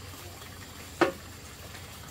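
A pot knocks down on a wooden surface.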